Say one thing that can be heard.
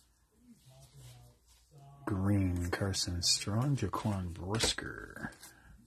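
Stiff cards slide and flick against each other.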